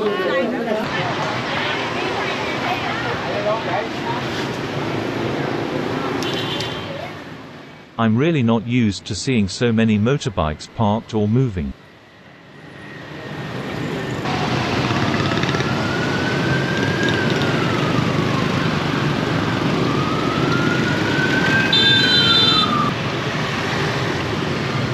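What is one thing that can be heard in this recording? Motorbike engines hum and rumble as traffic passes close by on a busy street.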